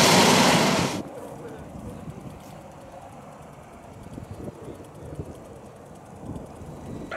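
A propeller plane drones faintly high overhead.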